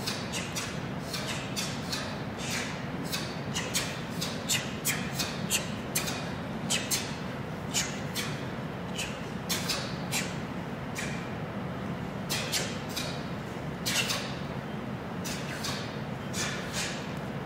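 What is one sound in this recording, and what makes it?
Uniforms snap sharply with quick punches and kicks in a large echoing hall.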